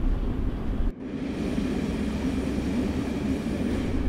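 A train rolls past outdoors with a steady rumble and rattle.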